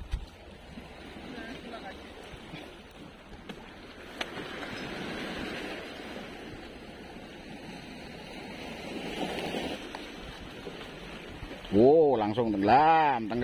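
Small waves lap and splash against rocks outdoors.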